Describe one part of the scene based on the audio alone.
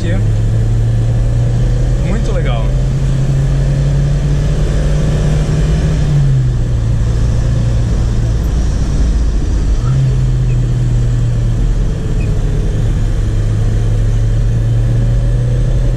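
Tyres roll over a road with a steady rumble.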